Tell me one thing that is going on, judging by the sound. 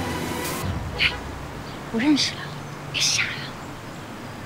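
A young man speaks briefly and teasingly, close by.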